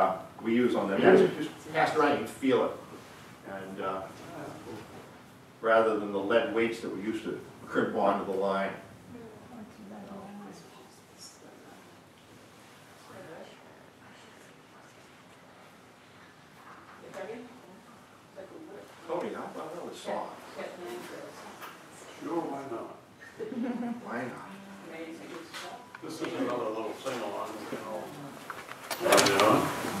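An elderly man speaks slowly and thoughtfully in a room, with long pauses.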